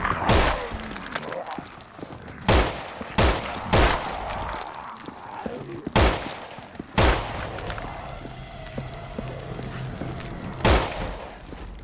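Loud rifle shots ring out, echoing in a large hall.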